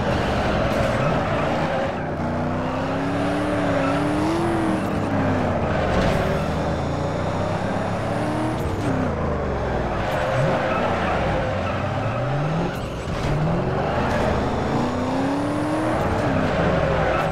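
Tyres screech steadily on the road.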